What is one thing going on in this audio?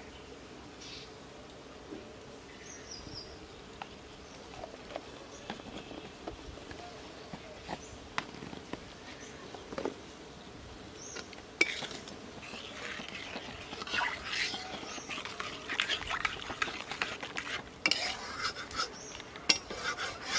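Oil sizzles and bubbles in a hot pan.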